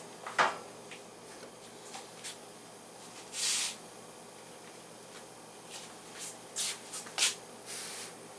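Dough slaps softly onto a hot griddle.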